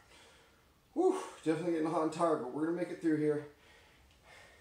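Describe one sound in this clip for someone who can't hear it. A man groans with strain, close by.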